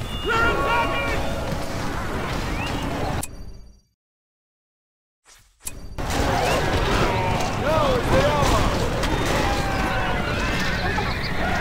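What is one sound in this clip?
Swords clash in a close fight.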